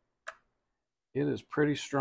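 A small plastic button clicks under a thumb.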